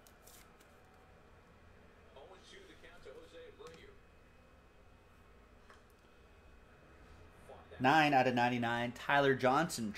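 Cards rustle and click as they are handled.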